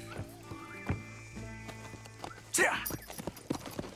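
Horses' hooves clop on gravel.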